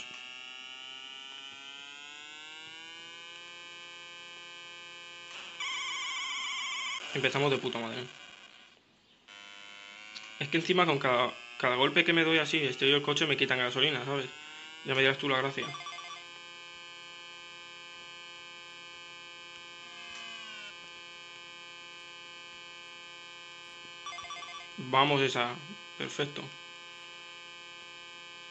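A retro video game car engine hums steadily, rising in pitch as it speeds up.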